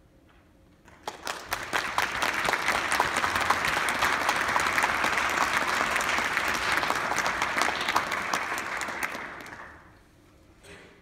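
An audience claps loudly in a large hall, then the clapping fades.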